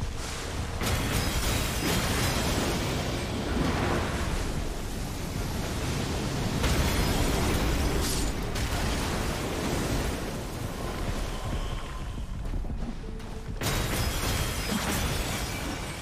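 Magic blasts crackle and roar loudly.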